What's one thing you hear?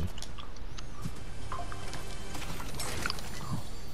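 A treasure chest opens with a sparkling chime.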